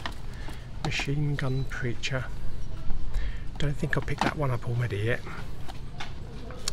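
Plastic disc cases clack and rattle as they are handled on a shelf.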